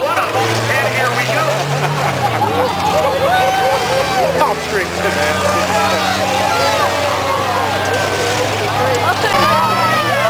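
A crowd of spectators chatters and cheers close by.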